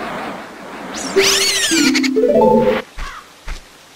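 A short bright jingle chimes.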